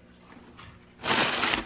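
Paper crinkles and rustles.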